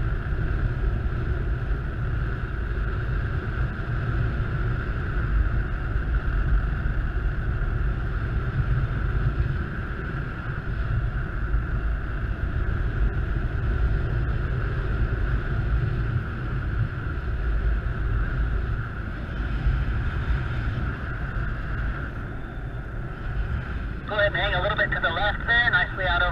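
Wind buffets and rumbles steadily against the microphone in flight.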